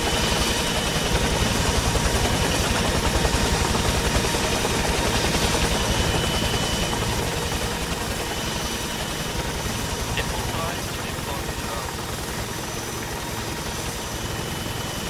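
A helicopter's engine drones steadily.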